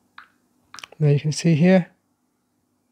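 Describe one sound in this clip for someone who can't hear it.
A phone plays a short, loud notification tone.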